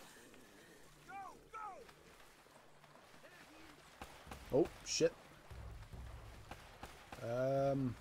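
Water splashes as two people swim.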